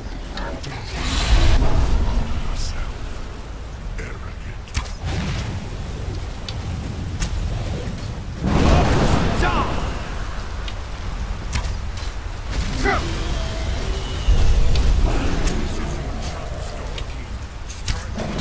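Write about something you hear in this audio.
Magic bursts crackle and boom.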